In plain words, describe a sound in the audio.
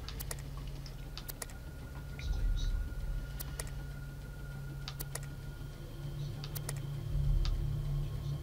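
Short clicks tick as a menu selection moves.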